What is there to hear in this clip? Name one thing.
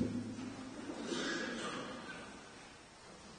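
A man speaks briefly at a lectern microphone in a large echoing church.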